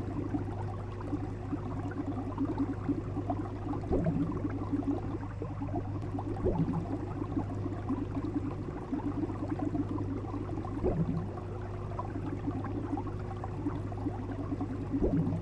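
Aquarium water bubbles and gurgles steadily.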